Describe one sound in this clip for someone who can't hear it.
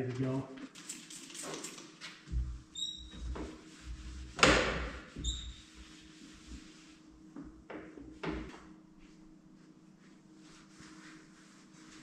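A cloth rubs and squeaks on a glass window.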